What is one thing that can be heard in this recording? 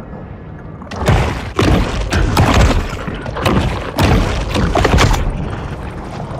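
A shark bites and tears into prey with wet crunching thuds.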